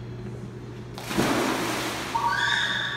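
Water splashes loudly as a boy jumps into a pool.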